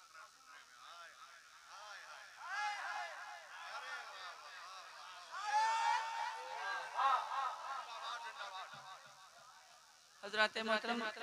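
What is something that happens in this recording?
A crowd of men chants and cheers loudly.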